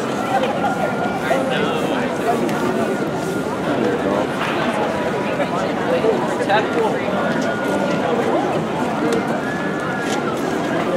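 A crowd of marchers chatters and calls out outdoors.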